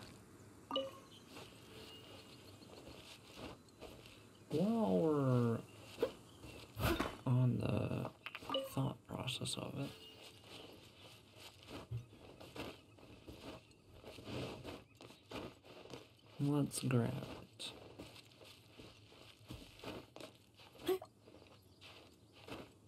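A young man talks with animation into a microphone, close by.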